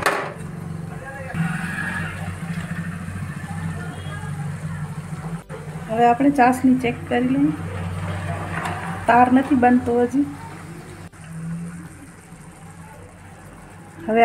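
Sugar syrup bubbles and sizzles in a pan.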